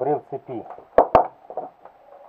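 Small plastic parts click and knock as they are handled.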